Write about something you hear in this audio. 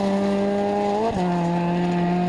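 A car's engine drops in pitch briefly as the driver shifts gear.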